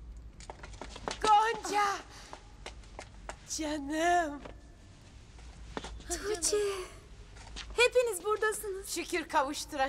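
Women cheer and shout excitedly nearby.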